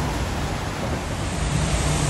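Traffic hums along a wet street nearby.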